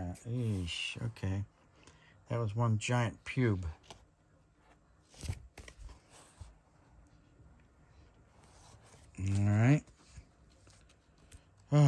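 Stiff plastic binder pages rustle and crinkle as they are turned.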